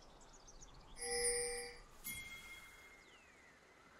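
A bright magical chime rings out, followed by a sharp whooshing blast.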